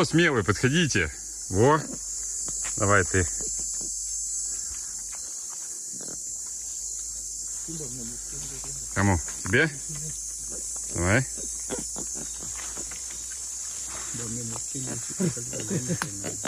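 Lemurs grunt and call nearby in short bursts.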